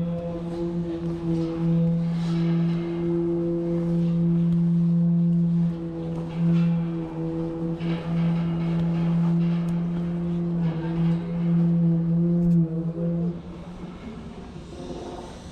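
Wind blows outdoors at height.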